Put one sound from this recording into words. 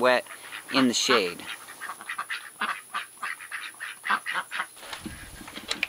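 Ducks quack loudly and chatter close by.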